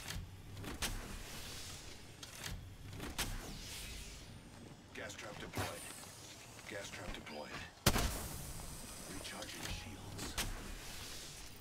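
A smoke canister bursts and hisses.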